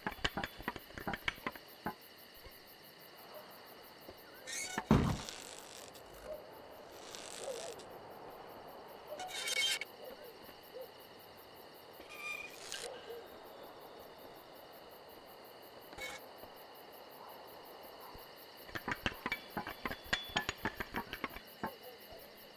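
Soft footsteps patter on the ground.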